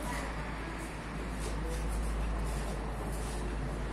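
Footsteps tap on a stone floor nearby.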